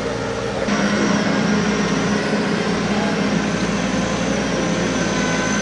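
Machine rollers whir and rattle as they pull in grass.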